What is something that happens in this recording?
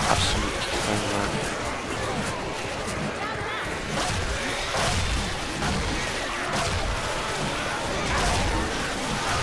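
A blunt weapon strikes bodies with heavy, wet thuds.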